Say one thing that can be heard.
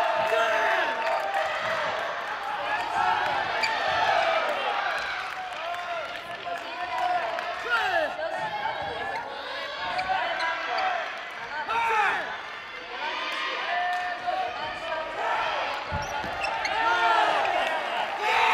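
Sneakers squeak sharply on a hard court floor in a large echoing hall.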